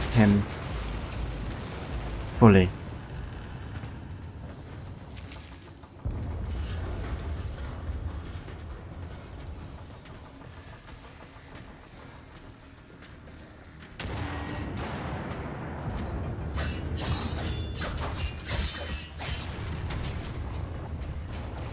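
Footsteps patter quickly on a metal floor.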